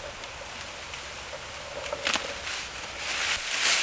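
Hands rustle and bend dry reeds.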